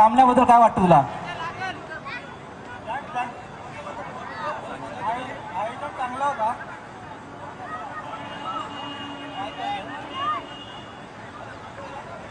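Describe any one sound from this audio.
A crowd of people chatter and call out in the distance.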